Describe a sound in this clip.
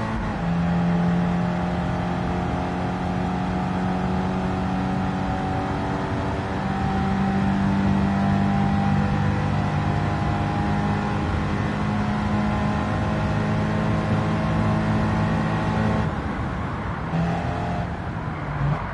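A car engine drones steadily at high speed, its pitch shifting as the gears change.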